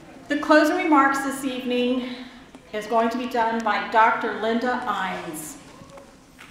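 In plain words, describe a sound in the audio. A middle-aged woman speaks calmly into a microphone over a loudspeaker in a large hall.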